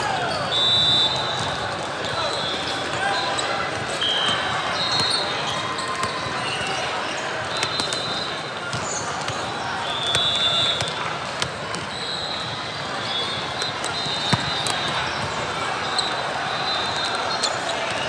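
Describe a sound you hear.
A large echoing hall is filled with the steady din of crowd chatter.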